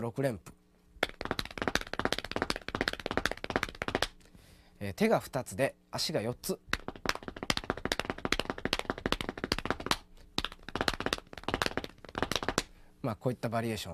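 Hands pat rapidly on thighs in a quick, steady rhythm.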